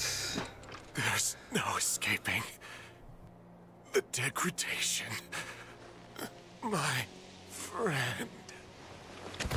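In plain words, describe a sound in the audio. A man speaks in a strained, weak voice.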